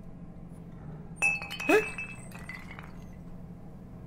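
A glass bottle drops and rolls across a wooden floor.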